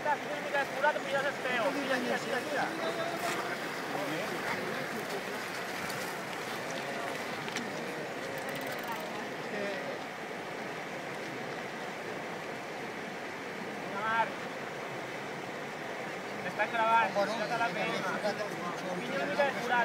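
A bicycle splashes through shallow water.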